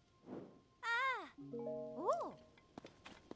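A short rising chime plays.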